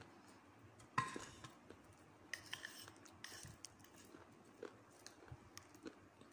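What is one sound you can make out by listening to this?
A metal spoon scrapes and stirs thick wet paste in a ceramic bowl.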